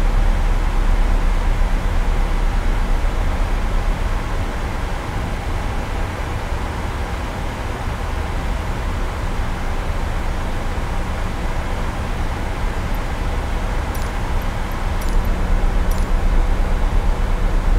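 Jet engines roar with a steady low rumble.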